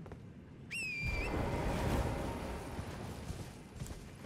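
A magical shimmer swells and fades.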